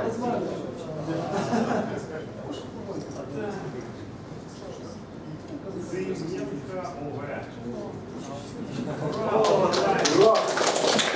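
A man talks calmly to a group.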